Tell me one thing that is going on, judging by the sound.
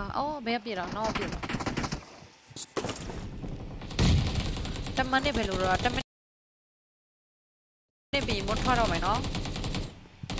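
Gunshots crackle rapidly from a video game.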